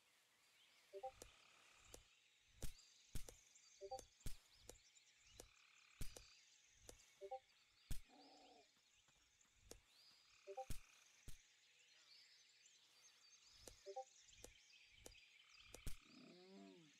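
Sharp biting thuds strike again and again.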